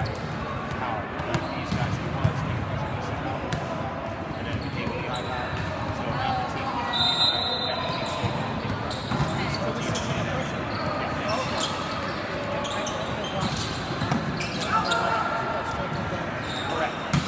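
Players call out and chatter in an echoing hall.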